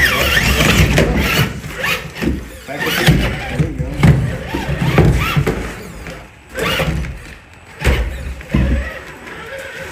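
Plastic tyres scrape and grind over rock.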